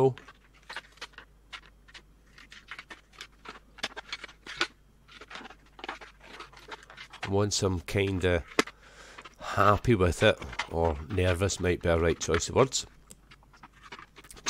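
A thin plastic sheet crinkles as it is handled.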